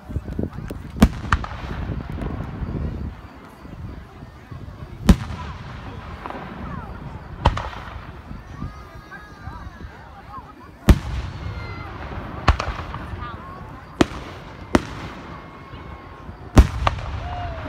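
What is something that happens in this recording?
Fireworks burst with loud, sharp bangs that echo away.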